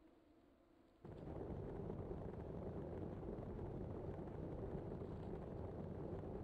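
Bicycle tyres rumble loudly over cobblestones.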